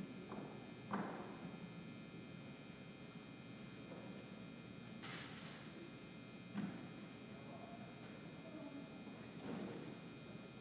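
Objects knock softly on a table.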